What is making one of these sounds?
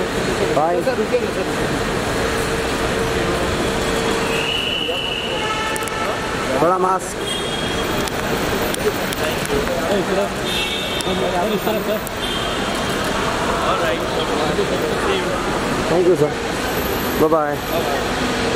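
A crowd murmurs in a large, echoing open space.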